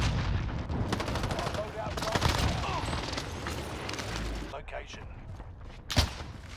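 A gun fires sharp, loud shots.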